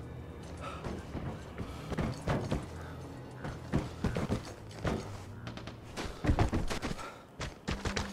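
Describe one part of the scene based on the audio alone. Boots thud on a wooden deck.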